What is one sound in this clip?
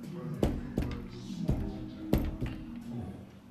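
Knuckles knock on a door.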